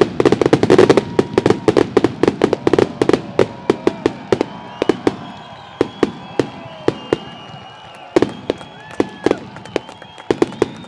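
Fireworks pop and bang one by one as the barrage thins out.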